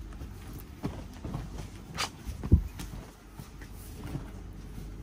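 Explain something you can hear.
Cloth rustles and thumps as garments are flipped and smoothed by hand.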